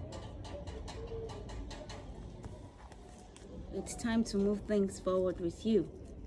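A woman speaks close by, softly at first, then louder and with more animation.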